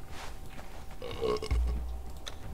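A man speaks calmly and briefly close to a microphone.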